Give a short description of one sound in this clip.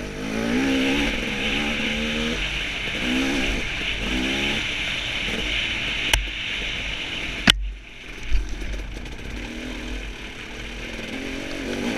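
Knobby tyres crunch over a dirt trail.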